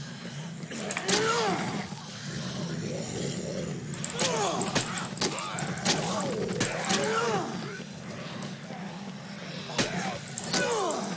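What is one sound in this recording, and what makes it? Zombies groan and moan.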